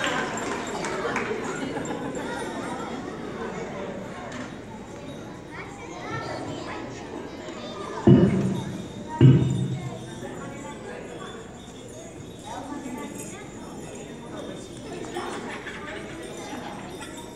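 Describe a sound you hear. An audience of children and adults murmurs and chatters nearby.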